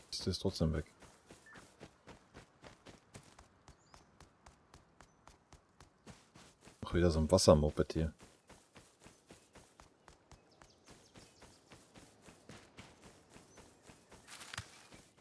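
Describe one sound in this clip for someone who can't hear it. Footsteps crunch steadily over dirt and grass.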